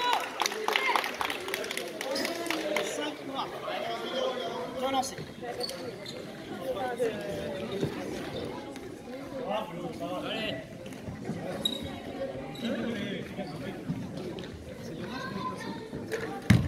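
Several men talk and call out in a large echoing hall.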